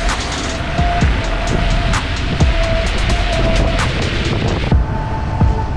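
Tyres hiss and spray on a wet road as a vehicle drives past.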